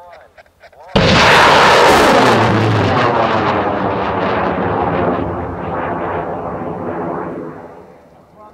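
A rocket motor bursts into a loud roar that slowly fades as the rocket climbs away.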